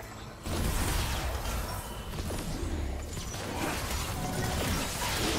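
Game spells and attacks crackle and burst in quick succession.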